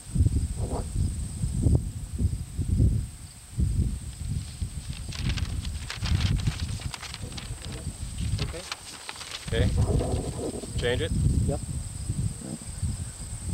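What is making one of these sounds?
A man speaks calmly and quietly close by.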